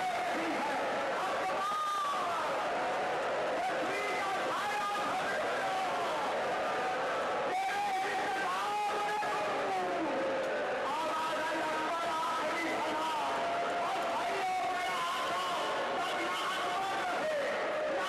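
A man speaks passionately through a microphone in a large echoing hall.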